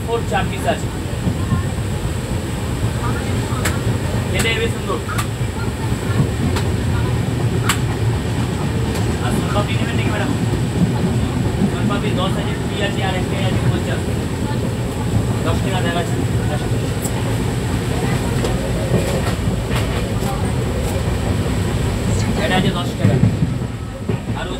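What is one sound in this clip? A moving train rumbles and rattles steadily.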